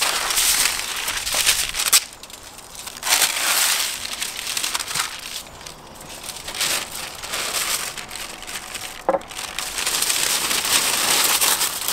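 Stiff paper rustles and crackles.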